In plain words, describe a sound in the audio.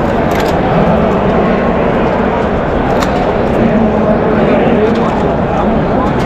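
A large crowd chatters and chants loudly outdoors.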